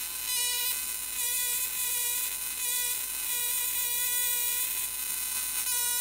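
A high-voltage electric spark buzzes with a harsh, steady hum that swells and dips.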